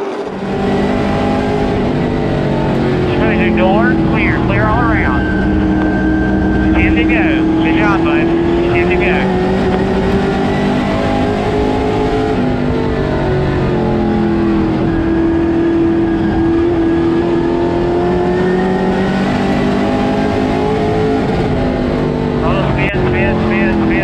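A race car engine roars loudly from inside the cabin, rising and falling in pitch as it speeds up and slows down.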